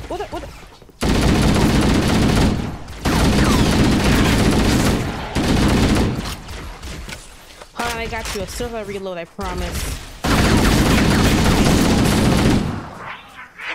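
An automatic rifle fires loud, rapid bursts.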